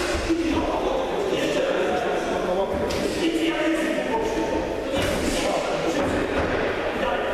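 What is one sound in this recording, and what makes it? Boxers' feet shuffle and thud on a ring canvas in a large echoing hall.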